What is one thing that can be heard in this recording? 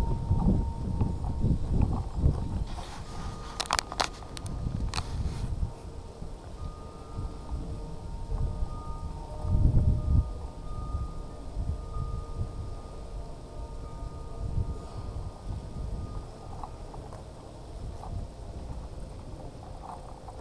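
Wind gusts outdoors.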